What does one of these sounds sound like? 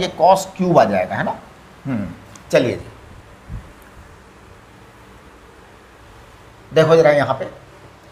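An elderly man lectures calmly through a microphone, in short bursts.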